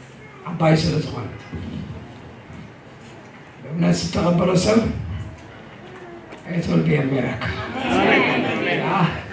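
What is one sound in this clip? A middle-aged man speaks with feeling through a microphone in a large echoing hall.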